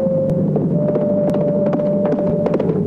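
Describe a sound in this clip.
Horse hooves thud on sandy ground at a gallop.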